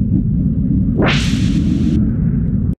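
A bright magical sound effect whooshes upward.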